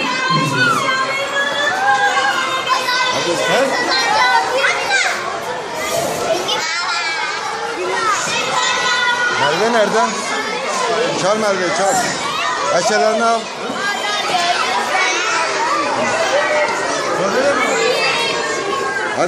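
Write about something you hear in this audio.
Many young children chatter and shout excitedly close by, echoing in a room.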